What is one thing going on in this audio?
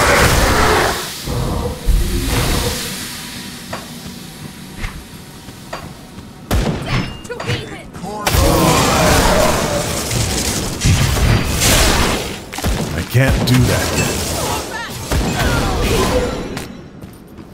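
Electric spell blasts crackle and boom.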